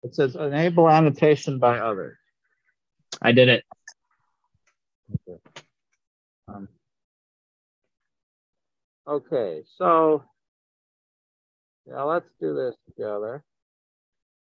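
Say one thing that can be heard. A middle-aged man talks calmly over an online call.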